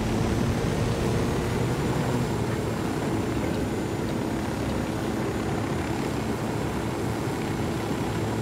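A helicopter drones steadily in flight.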